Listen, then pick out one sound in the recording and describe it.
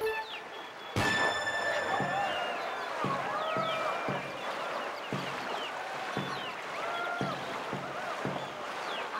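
Water rushes and splashes against a kayak.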